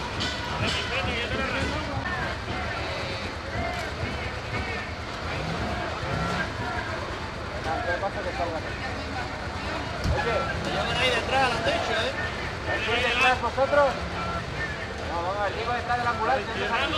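A crowd of men and women shouts and chants loudly outdoors.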